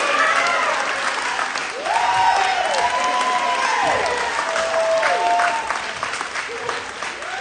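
A group of people clap their hands.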